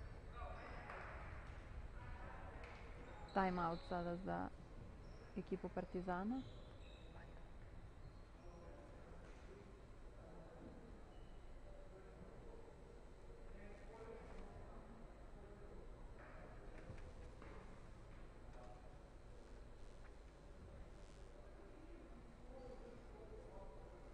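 Distant voices murmur in a large echoing hall.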